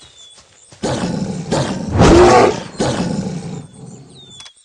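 A wolf snarls and growls while fighting a bear.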